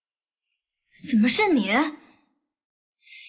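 A young woman speaks with surprise up close.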